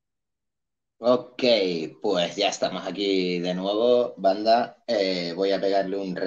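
A man talks with animation close to a microphone, as in an online call.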